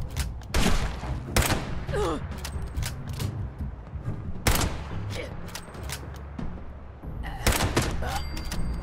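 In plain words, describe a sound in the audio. Pistol shots ring out sharply, one at a time, with a short echo.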